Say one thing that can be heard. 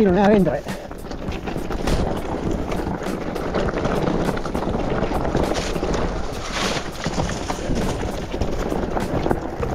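A bicycle frame clatters and rattles over bumps.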